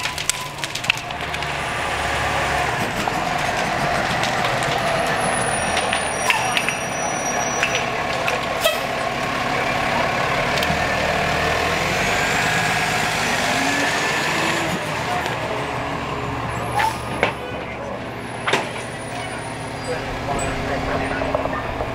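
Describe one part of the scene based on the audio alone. A fire engine rumbles steadily nearby.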